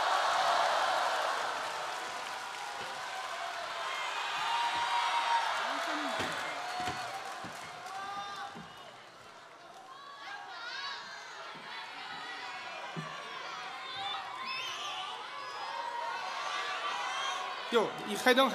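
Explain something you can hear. A crowd laughs loudly.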